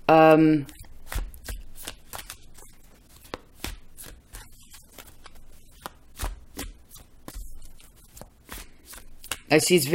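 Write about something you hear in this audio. Small clicks and taps come from a handheld object being handled.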